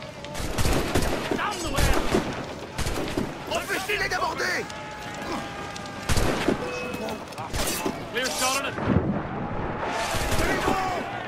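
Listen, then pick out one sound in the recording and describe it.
Cannons boom in heavy blasts.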